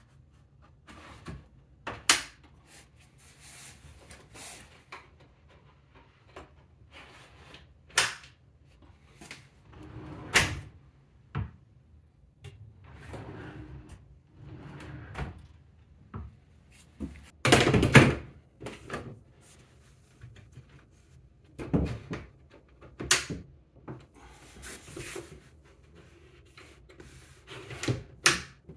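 Hands knock and scrape against a wooden cabinet.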